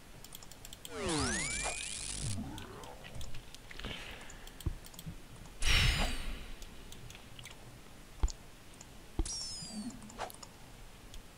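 Magic spell effects whoosh with sweeping, sliding tones.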